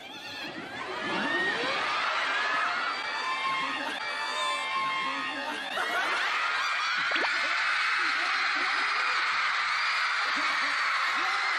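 A large crowd screams and cheers in a big echoing hall.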